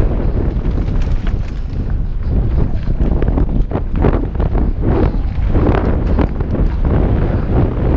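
Wind rushes loudly past a helmet microphone.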